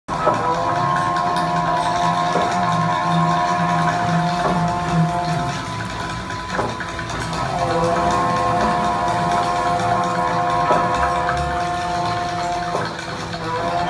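Drums beat with sharp hits.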